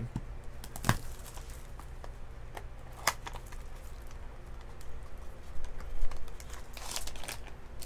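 Plastic card packaging clicks and rustles as it is handled.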